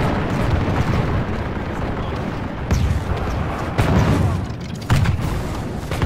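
The din of a large battle rumbles steadily in the distance.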